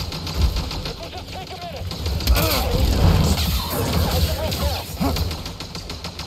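A huge beast roars and growls.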